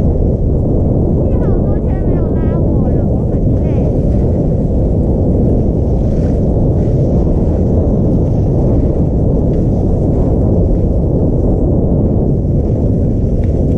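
Wind buffets the microphone with a steady low rumble.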